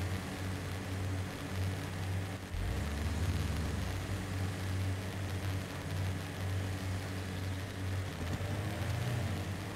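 An off-road truck engine rumbles low and steady, revving as it climbs.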